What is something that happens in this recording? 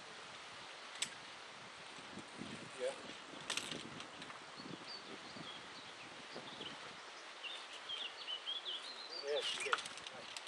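Metal climbing gear clinks against rock.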